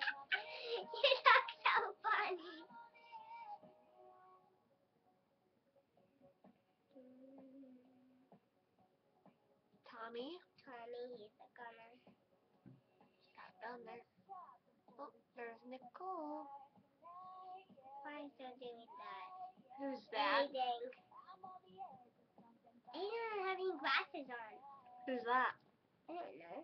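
A teenage girl talks calmly close to a microphone.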